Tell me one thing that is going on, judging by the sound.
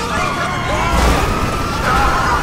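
A car crashes into another car with a loud metallic bang.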